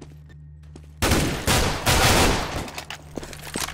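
A rifle fires loud rapid bursts of gunshots.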